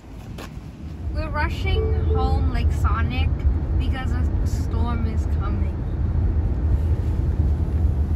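A car's engine and tyres rumble steadily on a road.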